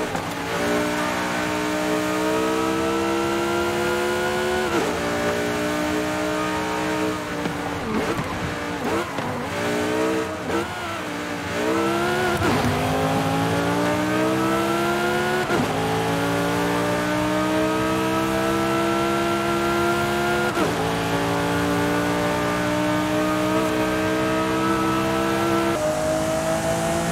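A sports car engine roars loudly, revving up through the gears with sharp shifts.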